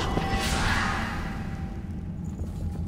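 A sword strike bursts with a loud crackling whoosh and fades.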